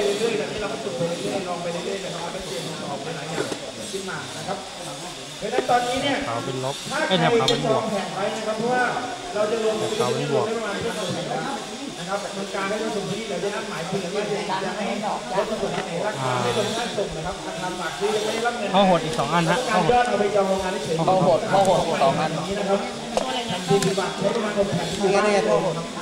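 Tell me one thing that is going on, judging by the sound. A young man talks calmly into a clip-on microphone, close by.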